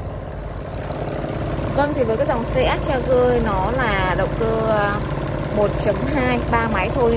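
A car engine idles with a steady hum.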